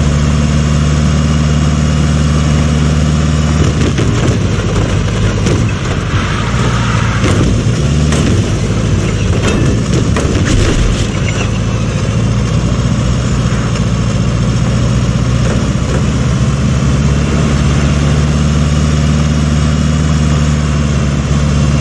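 A truck engine hums steadily and revs.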